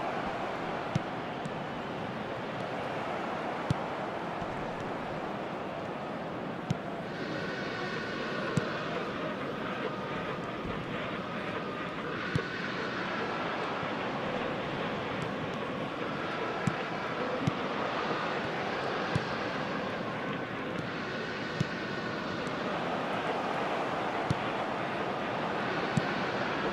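A football is kicked with short thuds now and then.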